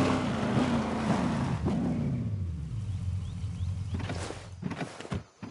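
A truck engine rumbles and winds down as the truck slows to a stop.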